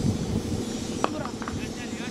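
A cricket bat cracks sharply against a ball.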